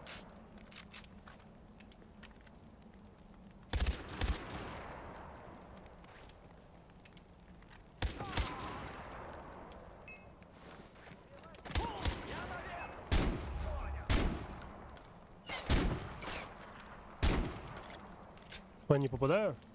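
A gun is reloaded with metallic clicks.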